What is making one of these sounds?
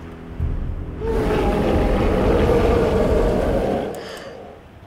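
A young boy groans wearily up close.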